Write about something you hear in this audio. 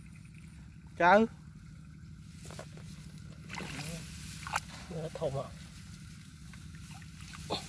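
Hands squelch and slosh in wet mud.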